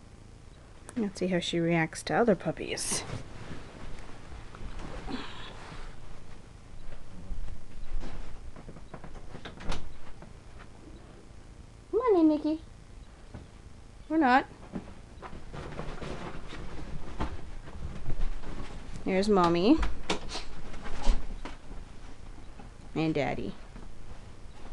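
A puppy yips and whines in short, high bursts.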